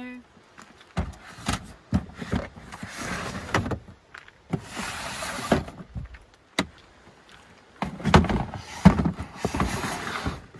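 Plastic bins knock against wood.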